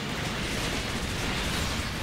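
An explosion bursts with a roar.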